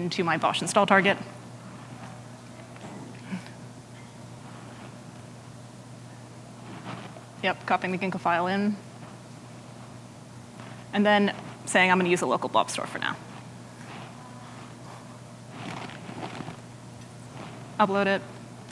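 A woman speaks through a microphone in short bursts, with pauses.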